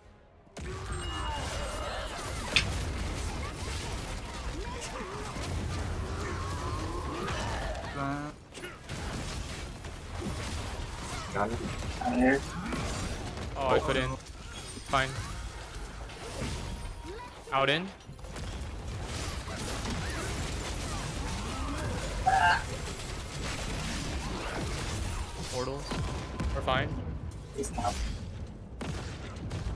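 Magic blasts and combat effects crackle and boom continuously.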